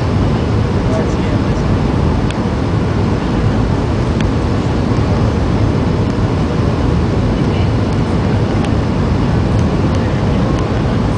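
Jet engines roar steadily from inside an aircraft cabin.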